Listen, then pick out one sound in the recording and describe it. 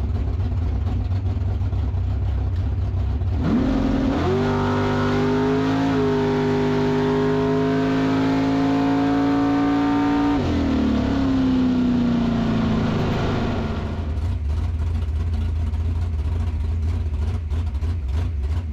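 A race car engine idles with a deep, heavy rumble close by.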